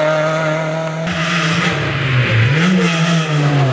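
A second rally car engine roars as it approaches.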